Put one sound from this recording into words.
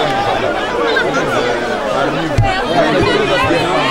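A man speaks loudly and with animation amid a crowd.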